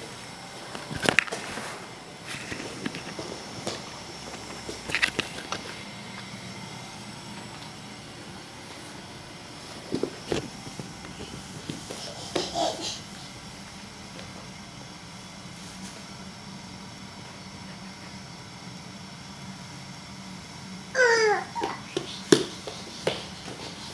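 Small hands and knees thump on a wooden floor.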